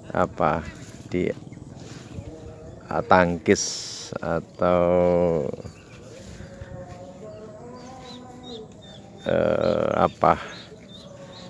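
A woman talks nearby in short bursts, outdoors.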